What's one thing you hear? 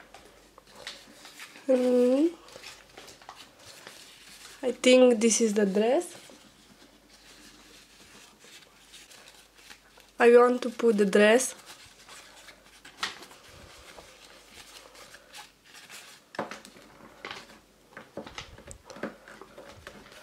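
Paper rustles softly.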